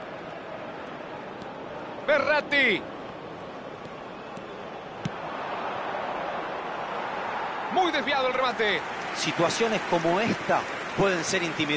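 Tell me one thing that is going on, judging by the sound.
A large stadium crowd murmurs and cheers steadily, swelling midway.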